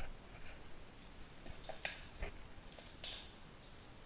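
A plastic toy rattles.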